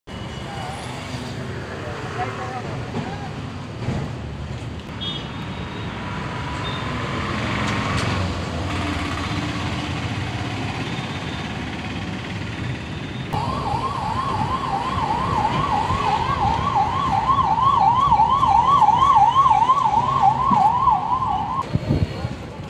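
Traffic rumbles along a nearby street outdoors.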